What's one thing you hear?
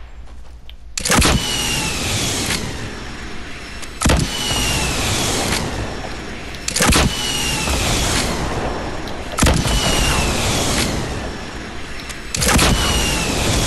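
Rockets launch with a loud whoosh, again and again.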